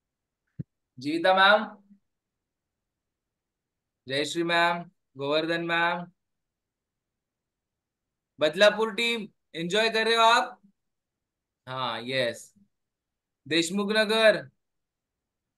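A man speaks in short phrases over an online call.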